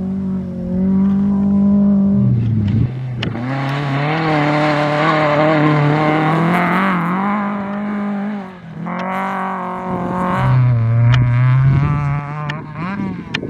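Gravel sprays and rattles under spinning tyres.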